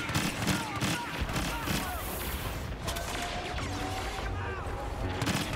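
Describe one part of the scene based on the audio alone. A lightsaber hums and swooshes.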